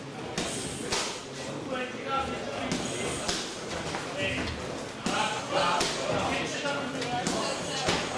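Gloved punches and kicks thud against bodies.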